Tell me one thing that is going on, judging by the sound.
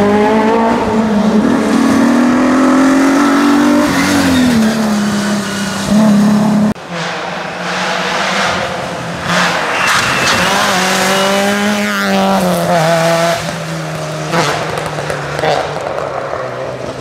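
A rally car engine roars loudly, revving up and down as it speeds past on a wet road.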